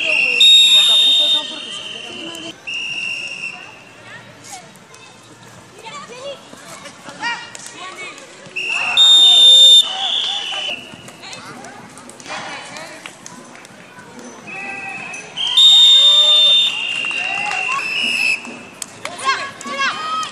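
Young women shout and call out to each other across the field.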